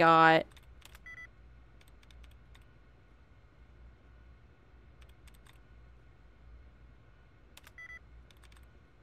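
A computer terminal beeps and clicks as entries are selected.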